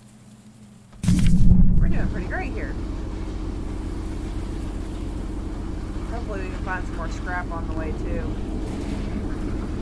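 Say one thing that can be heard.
A train engine rumbles low and steady.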